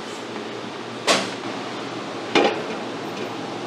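Metal steamer pots clank as they are set on a stove.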